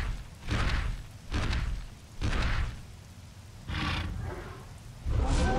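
A large beast roars in short, loud bursts.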